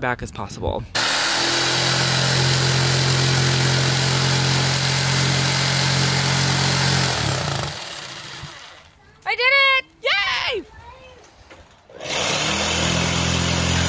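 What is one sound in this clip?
A jigsaw buzzes loudly as it cuts through wood.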